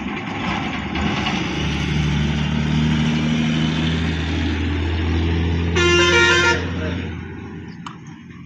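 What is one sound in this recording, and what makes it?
A bus engine roars as it drives past.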